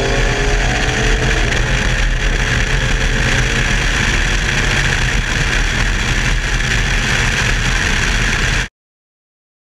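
A car engine roars loudly at speed.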